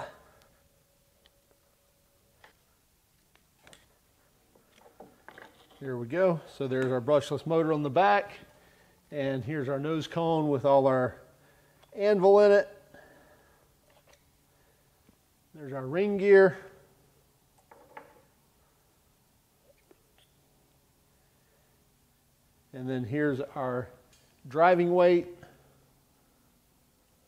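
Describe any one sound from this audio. Metal tool parts clink and click softly as hands handle them.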